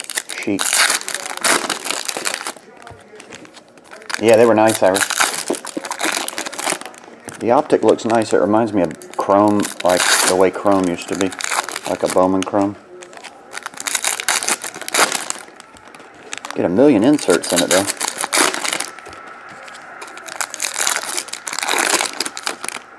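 Foil card packs crinkle and rustle as they are torn open up close.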